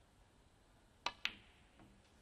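A snooker cue strikes the cue ball.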